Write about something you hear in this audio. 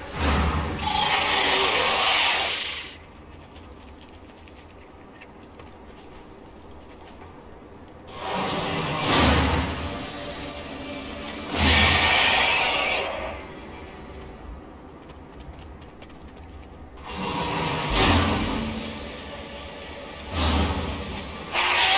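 A magical spell bursts with a bright, shimmering whoosh.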